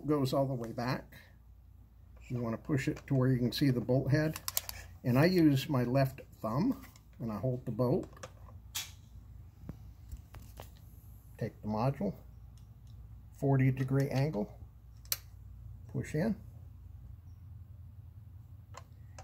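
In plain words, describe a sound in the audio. A rifle's metal parts click as they are handled.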